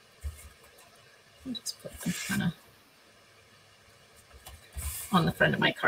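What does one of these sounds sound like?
A paper card slides and rustles on a table.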